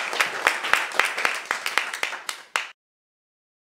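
An audience claps in a room.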